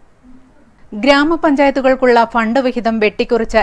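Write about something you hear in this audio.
A woman reads out the news clearly through a microphone.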